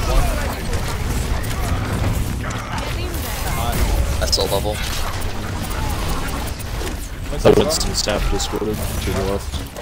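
Rapid energy gunfire crackles and zaps close by.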